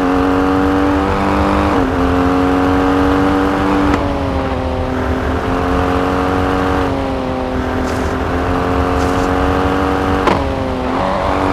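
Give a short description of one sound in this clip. A rally SUV engine runs at high revs, dipping briefly as it shifts up through the gears.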